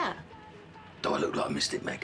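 An older man answers in a low voice.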